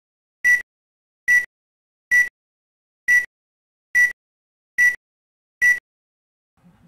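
Short electronic beeps sound at an even pace, one per second.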